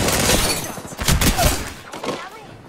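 Gunfire blasts in quick bursts.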